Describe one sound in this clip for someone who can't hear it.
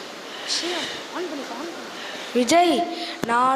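A young boy speaks with animation through a microphone and loudspeakers.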